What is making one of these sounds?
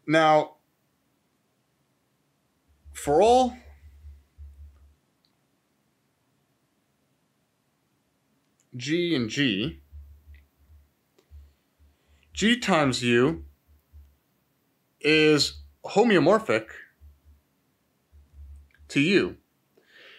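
A man speaks calmly and slowly into a close microphone, in short phrases with pauses.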